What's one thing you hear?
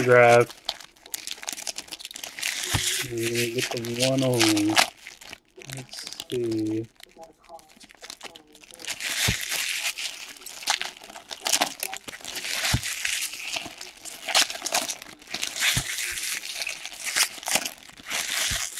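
Hands tear open and crinkle foil trading card packs.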